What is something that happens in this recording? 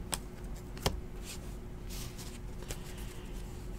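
Trading cards click and rustle softly between fingers.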